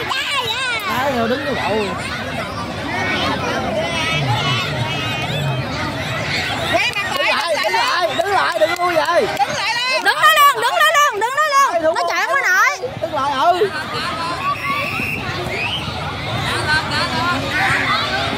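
A crowd of children shouts and cheers excitedly outdoors.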